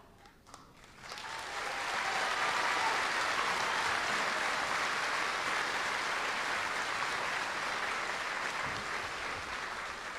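A large crowd applauds and cheers outdoors.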